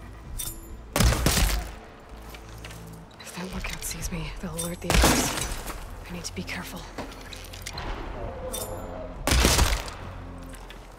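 A bow releases an arrow with a sharp twang and whoosh.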